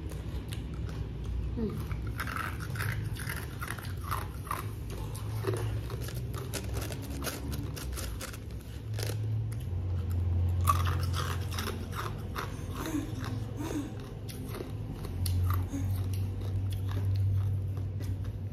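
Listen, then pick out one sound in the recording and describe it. A young woman chews crunchy food close to a microphone.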